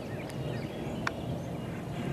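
A golf putter taps a ball with a short, crisp click.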